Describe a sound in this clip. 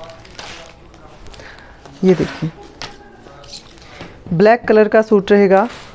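Cloth rustles as it is unfolded.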